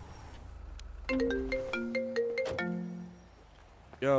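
A phone ringtone plays a melody.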